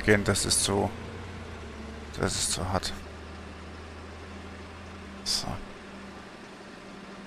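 A bus engine idles with a low steady hum.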